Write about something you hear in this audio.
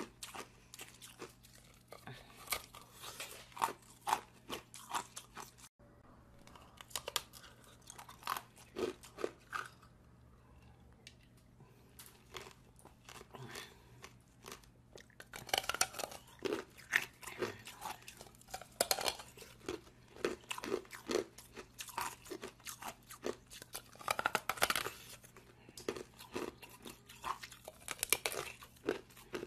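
A woman chews wetly and slurps close to a microphone.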